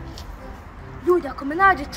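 A young boy cries out playfully, close by.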